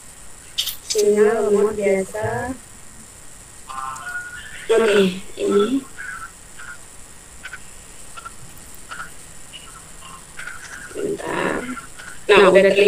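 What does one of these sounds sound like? A young woman speaks through an online call, in short bursts.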